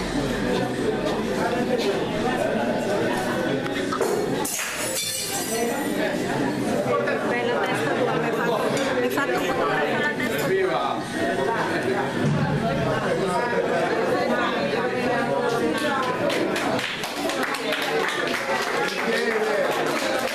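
A crowd of men and women chatters loudly all around in an echoing room.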